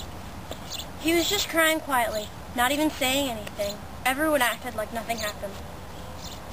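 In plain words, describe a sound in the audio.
A young girl sings loudly close by, outdoors.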